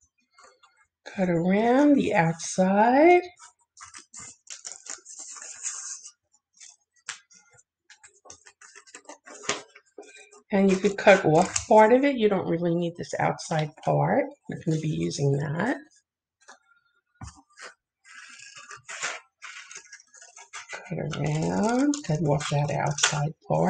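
Scissors snip and crunch through paper.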